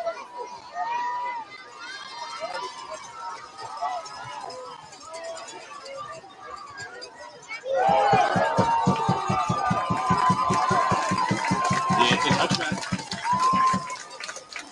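A crowd cheers and shouts outdoors at a distance.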